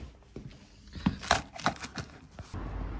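Items in a bag rustle and clatter as a hand rummages through it.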